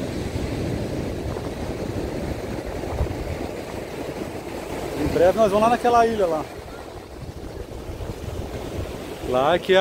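Waves wash and break on a beach outdoors.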